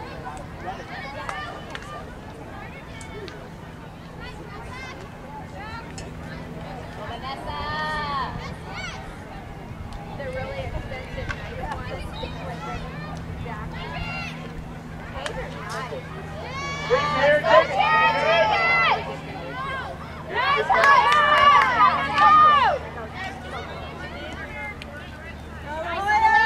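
Spectators chatter and shout encouragement outdoors.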